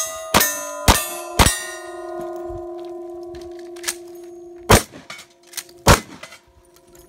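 Bullets strike metal targets with ringing clangs.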